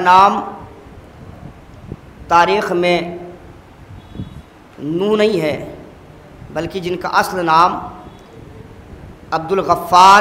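A young man chants in a melodic voice into a microphone, in phrases with pauses between them.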